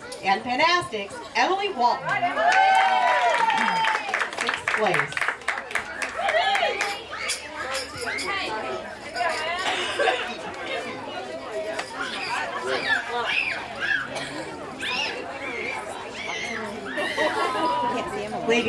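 Young girls chatter and cheer loudly nearby.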